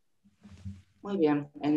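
An older woman speaks close to a microphone over an online call.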